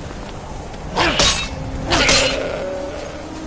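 Two sharp crackling bursts ring out as a blade strikes a creature.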